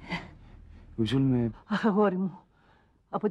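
An elderly woman speaks, close by.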